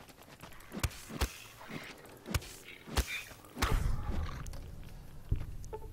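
A heavy weapon strikes with sharp thuds.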